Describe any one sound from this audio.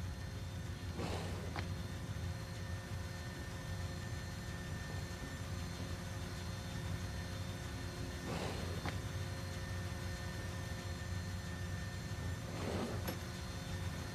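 A sliding metal door whooshes open.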